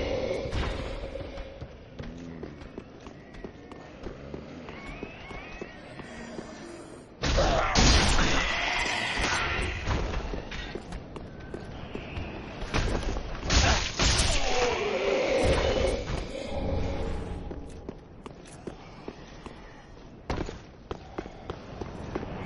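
Armoured footsteps clank quickly on stone.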